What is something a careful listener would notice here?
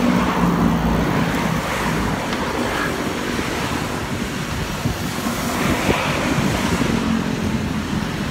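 Wind buffets against a microphone outdoors.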